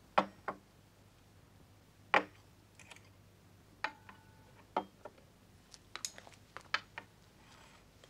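Dishes and cutlery clink on a table.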